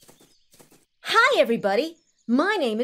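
A young boy speaks cheerfully and close by.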